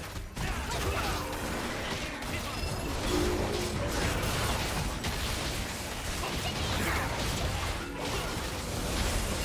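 Spells and attacks crackle and burst in a fast game fight.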